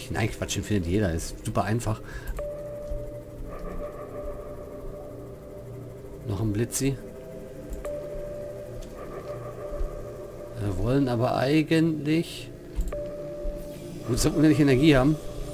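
A young man talks animatedly into a nearby microphone.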